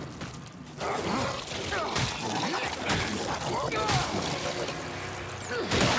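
A monstrous creature shrieks and snarls close by.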